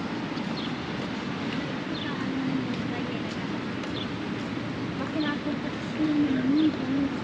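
Steady city traffic hums in the background outdoors.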